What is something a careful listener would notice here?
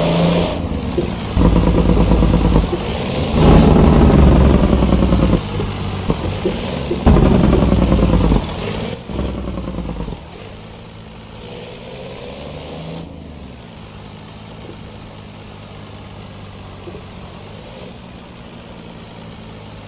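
A truck's tyres crunch over gravel.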